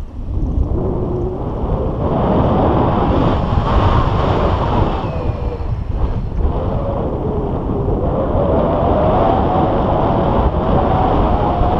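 Wind rushes and buffets against a microphone in flight.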